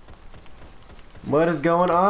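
A gun fires in rapid shots.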